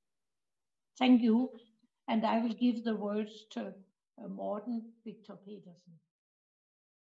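An elderly woman speaks calmly into a nearby microphone.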